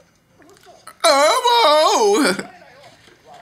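A young man shouts out loudly in surprise, close by.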